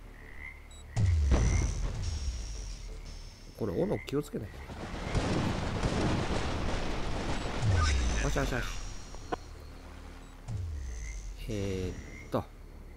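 Deep booms thud several times.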